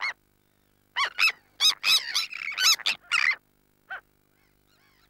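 Terns call with loud, harsh, rapid cries close by.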